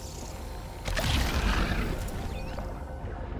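A blaster fires with a loud burst.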